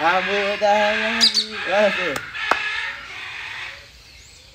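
A macaw squawks loudly close by.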